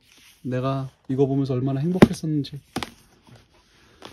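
A hardcover book is set down on a soft surface with a light knock.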